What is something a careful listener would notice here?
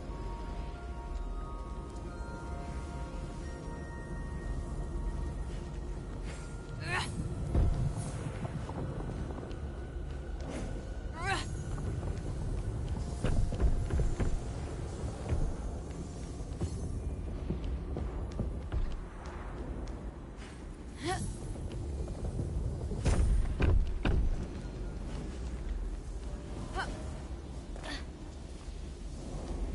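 Game music plays steadily throughout.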